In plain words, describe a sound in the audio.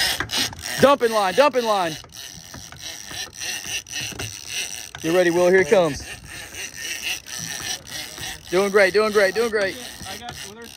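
A fishing reel ratchets and clicks.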